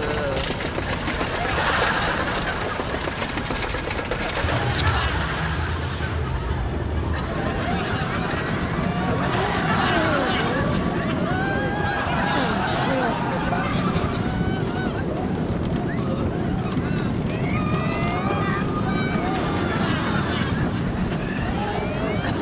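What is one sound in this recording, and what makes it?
A roller coaster rumbles and rattles along its track at speed.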